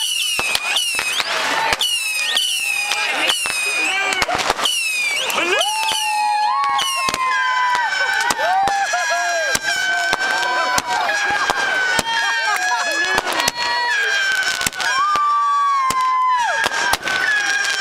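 Fireworks whistle loudly as they shoot up.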